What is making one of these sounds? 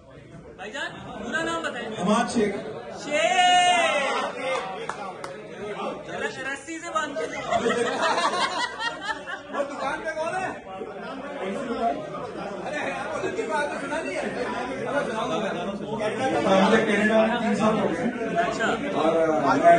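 A man speaks with animation into a microphone, heard through a loudspeaker in an echoing room.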